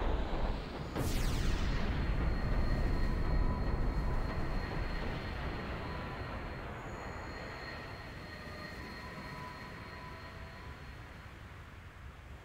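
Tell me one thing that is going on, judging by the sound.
A magical burst whooshes, then shimmers and slowly fades.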